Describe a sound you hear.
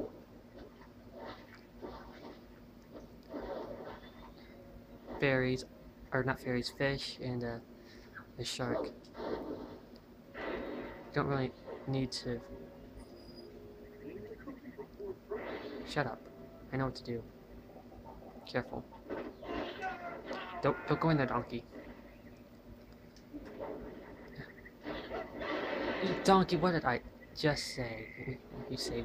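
Video game sound effects play through a television speaker.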